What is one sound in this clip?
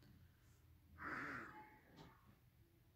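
A young woman sniffs softly.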